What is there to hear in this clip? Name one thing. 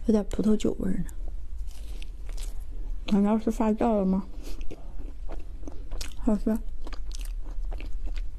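A young woman chews and smacks food close to a microphone.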